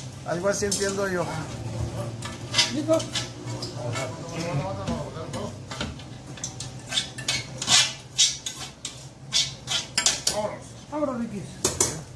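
A metal pan clanks and scrapes against a tray.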